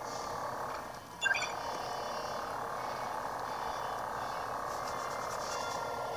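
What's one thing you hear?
Video game sounds play through small laptop speakers.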